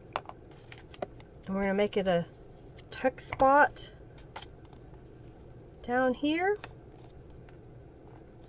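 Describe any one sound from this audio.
Paper rustles and taps as hands handle it.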